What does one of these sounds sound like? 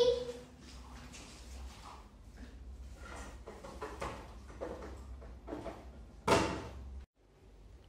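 Toy dishes and pots clatter and knock.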